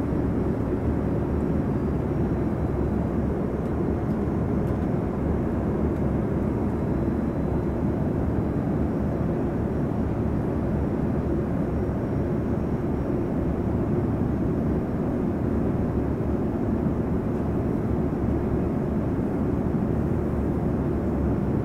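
A jet airliner's engines roar with a steady, low rumble heard from inside the cabin.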